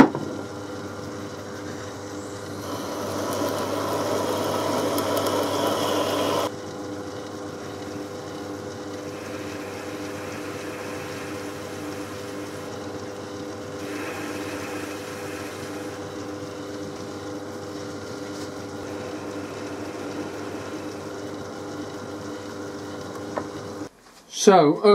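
A metal lathe hums steadily as it spins.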